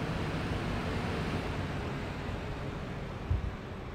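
A car engine hums as a vehicle drives along a road.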